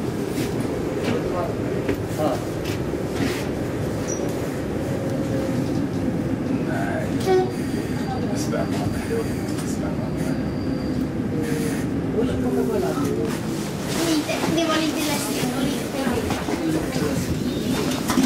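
A tram's wheels squeal on the rails.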